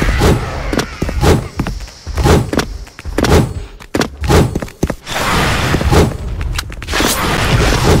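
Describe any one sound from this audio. A sword swishes through the air.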